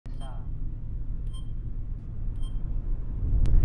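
Short electronic chimes beep a few times.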